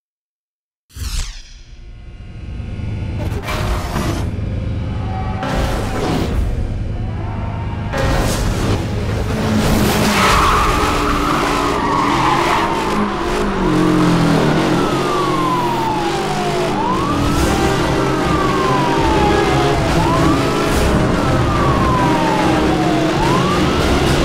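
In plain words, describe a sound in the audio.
A car engine roars and revs at high speed.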